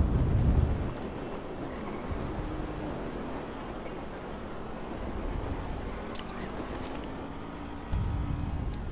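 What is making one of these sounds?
Wind rushes past a parachute in flight.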